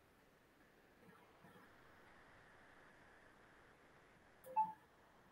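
A man speaks briefly and quietly over an online call.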